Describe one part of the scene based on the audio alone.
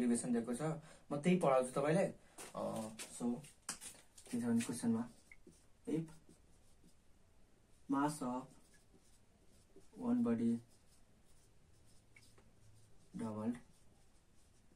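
A young man speaks calmly and clearly, close by, in short phrases with pauses.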